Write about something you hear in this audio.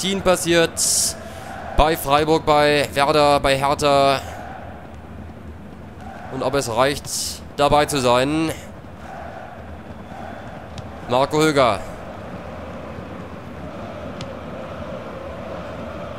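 A large stadium crowd murmurs and roars steadily in the background.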